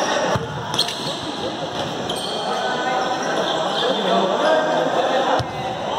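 A ball is kicked with a sharp thud in a large echoing hall.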